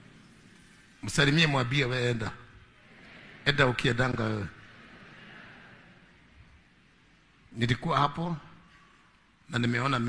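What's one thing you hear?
A man preaches with animation through a microphone, in short forceful bursts.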